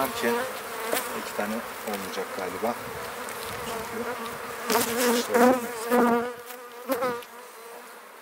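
Bees buzz in a loud, wavering hum close by.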